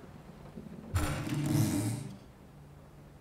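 A wooden box lid creaks open.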